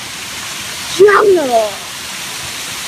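A young girl shrieks loudly close by.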